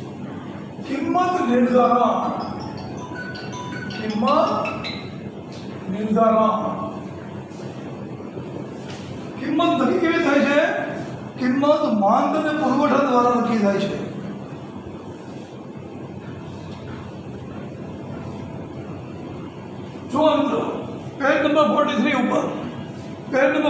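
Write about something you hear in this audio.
A middle-aged man speaks calmly and clearly, close by, in short phrases with pauses.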